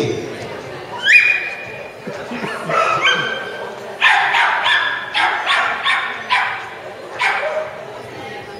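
A small dog barks sharply in a large echoing hall.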